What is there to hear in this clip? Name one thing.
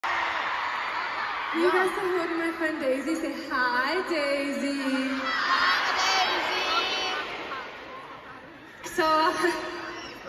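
A large crowd cheers and sings along.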